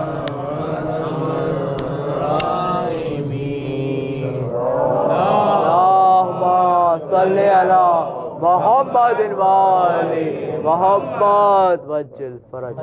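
A man chants a mournful recitation through a microphone in an echoing room.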